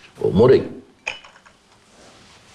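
Cups clink on a tray.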